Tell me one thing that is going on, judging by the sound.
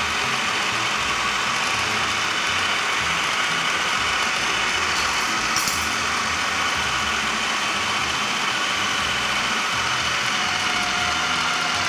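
A food processor whirs loudly and steadily.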